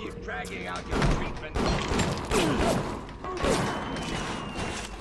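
A pistol fires several loud shots in quick succession.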